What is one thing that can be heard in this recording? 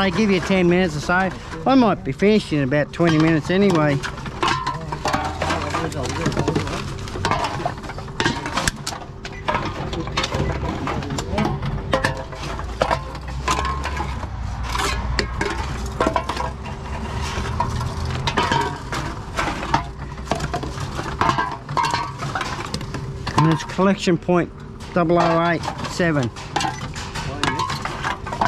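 Aluminium cans clink and rattle against each other.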